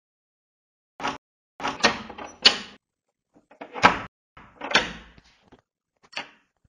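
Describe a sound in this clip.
A metal door bolt slides and clanks.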